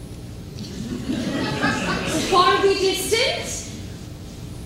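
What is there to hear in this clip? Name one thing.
A young woman sings with feeling.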